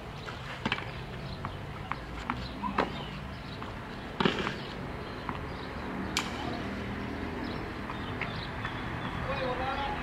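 A tennis ball is bounced on a clay court.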